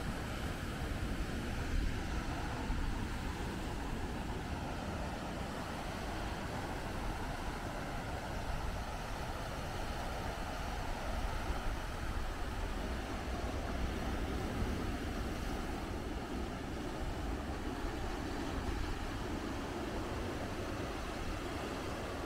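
Wind blows steadily outdoors, rumbling low.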